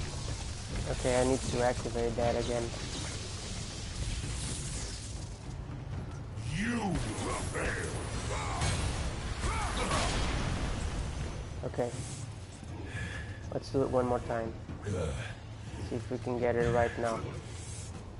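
A huge creature lets out deep, groaning roars.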